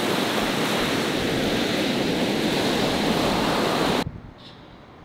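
Waves crash and wash onto a shore in wind.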